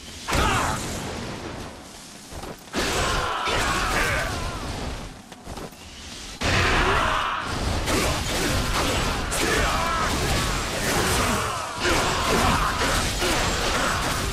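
Swords clash and slash in rapid bursts.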